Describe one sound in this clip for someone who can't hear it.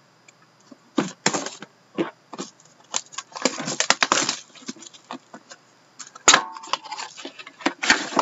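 Plastic packaging crinkles and rustles as hands tear it open.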